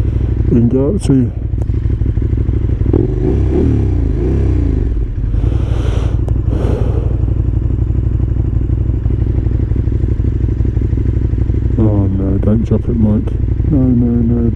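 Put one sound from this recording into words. A motorcycle engine revs up and down in short bursts.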